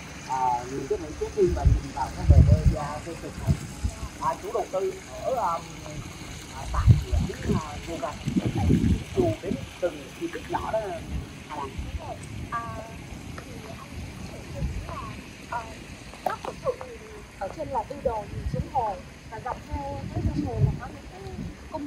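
Footsteps tap on a paved path outdoors.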